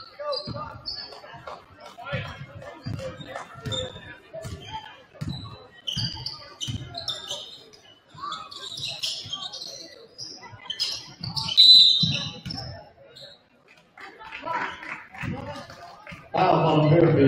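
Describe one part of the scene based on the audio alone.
Sneakers squeak sharply on a wooden floor.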